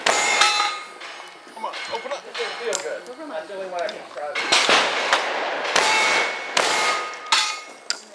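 A shotgun action clacks as it is worked.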